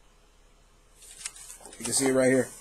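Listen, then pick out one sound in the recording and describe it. Paper pages rustle.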